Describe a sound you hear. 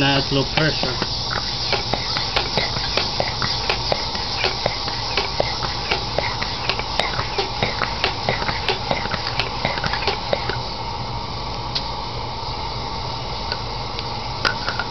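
A pressurized lantern burns with a steady hissing roar.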